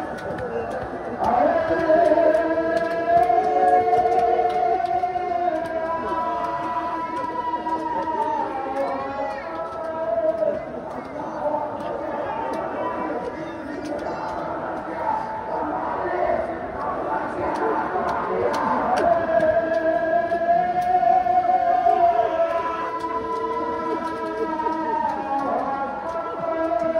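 A crowd chants loudly in unison, outdoors.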